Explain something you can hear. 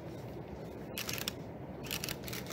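Paper rustles as it is handed over.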